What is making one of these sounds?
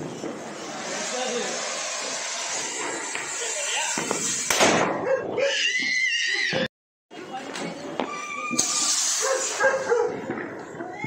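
A firework fountain hisses and crackles loudly.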